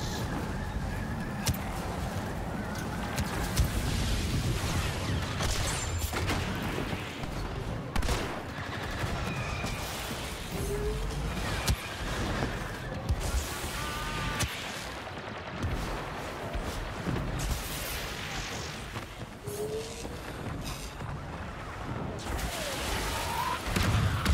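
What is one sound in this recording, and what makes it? Blaster shots crack and zap in rapid bursts.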